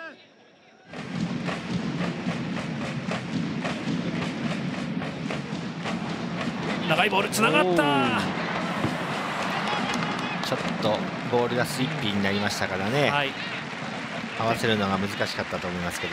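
A large stadium crowd chants and cheers loudly.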